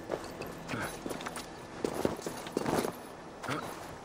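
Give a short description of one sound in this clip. A heavy body thuds onto the ground.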